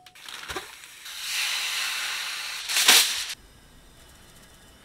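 Raw chicken pieces sizzle in a hot pan.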